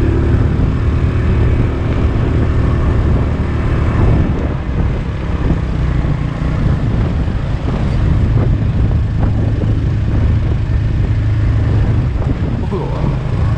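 Tyres roll over a rough, wet road.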